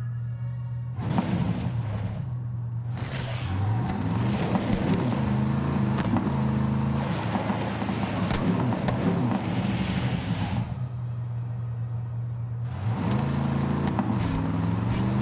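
A vehicle engine roars and revs up and down while driving.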